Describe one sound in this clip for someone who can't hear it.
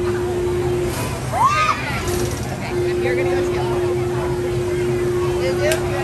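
Children on a thrill ride scream and shout with excitement.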